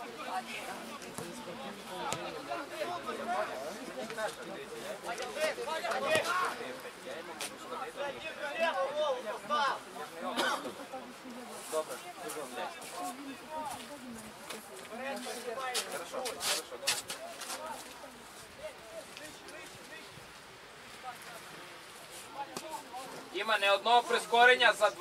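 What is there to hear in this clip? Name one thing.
Football players shout and call to each other across an open pitch outdoors.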